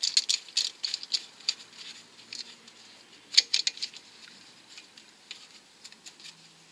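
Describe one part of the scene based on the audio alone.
Metal parts clink and scrape as a brake caliper is worked on by hand.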